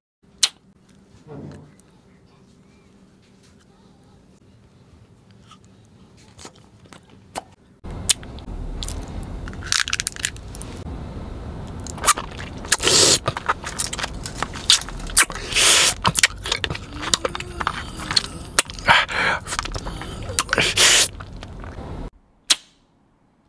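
Candy wrappers crinkle between fingers.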